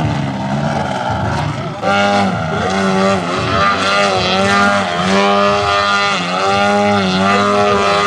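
A small propeller plane's engine buzzes loudly, its pitch rising and falling.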